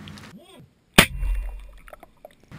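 A gunshot sounds muffled underwater.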